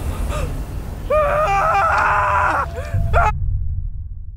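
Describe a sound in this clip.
A young man speaks in a strained voice close by.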